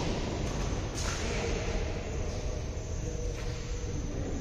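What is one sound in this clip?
A badminton racket strikes a shuttlecock.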